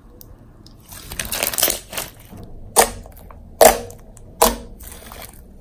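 Sticky slime squelches and crackles as hands squeeze it.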